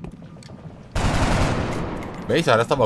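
A burst of gunfire rattles loudly.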